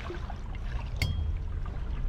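A metal trident clangs onto a stone floor.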